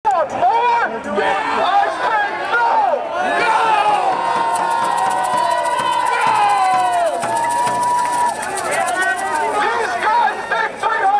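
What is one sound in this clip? A crowd of protesters chants and shouts together outdoors.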